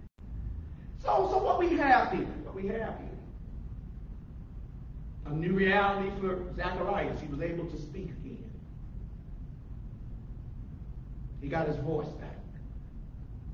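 A man speaks in short bursts with long pauses, in a room with some echo.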